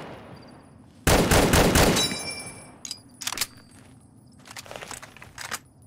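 A rifle's bolt clacks as it is reloaded.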